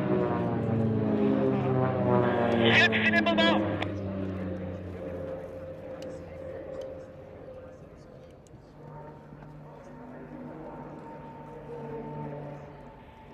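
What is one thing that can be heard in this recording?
Propeller aircraft engines drone overhead, rising and falling in pitch.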